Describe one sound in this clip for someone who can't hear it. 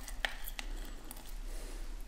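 Lemon juice drips into a jug.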